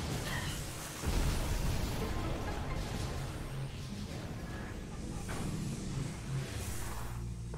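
Deep rumbling booms roll through an echoing space.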